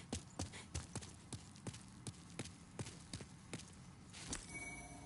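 Footsteps run quickly on a hard stone floor.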